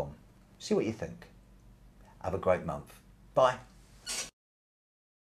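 An older man speaks calmly and close by, in short phrases.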